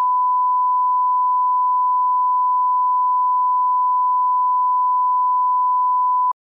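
A steady, high-pitched test tone sounds without a break.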